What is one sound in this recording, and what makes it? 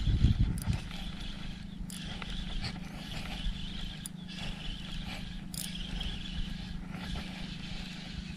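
A fishing reel whirs and clicks as it is cranked.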